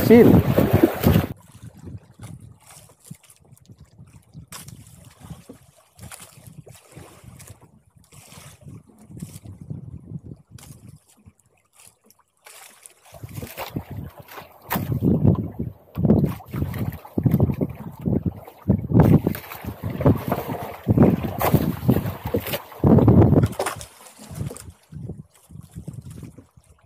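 Waves splash against the side of a small boat.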